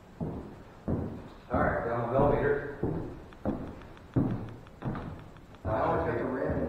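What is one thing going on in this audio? Footsteps knock on a wooden floor in an echoing room.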